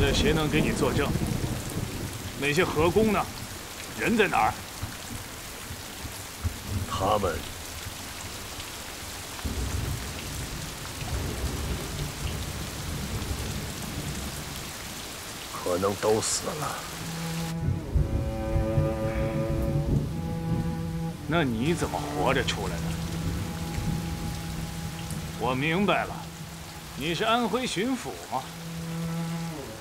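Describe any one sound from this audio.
A middle-aged man speaks in a low, stern voice, close by.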